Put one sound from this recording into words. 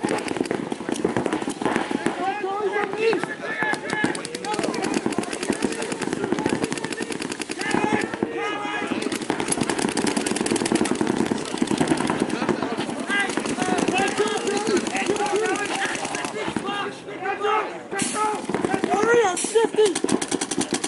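A paintball marker fires rapid shots nearby.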